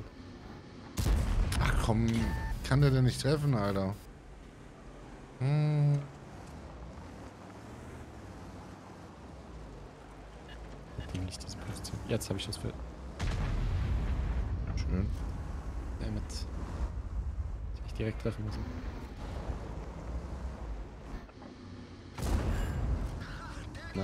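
Tank guns fire with heavy booms.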